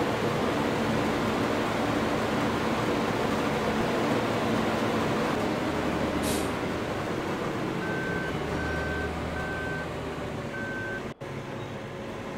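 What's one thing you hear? A combine harvester engine rumbles steadily while cutting through a field of corn.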